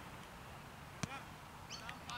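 A cricket bat strikes a ball with a sharp crack outdoors.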